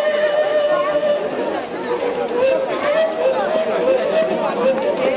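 A long wooden folk flute plays a steady, wavering melody in a large echoing hall.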